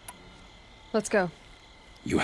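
A young woman speaks briefly and quietly, close by.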